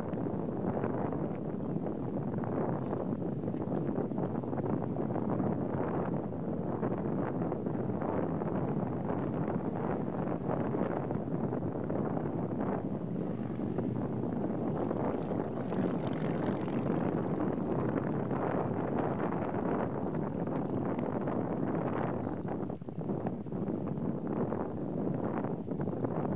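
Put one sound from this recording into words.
Strong wind blows steadily outdoors, buffeting the microphone.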